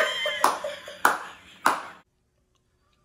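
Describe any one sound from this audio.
A young woman laughs loudly and with delight.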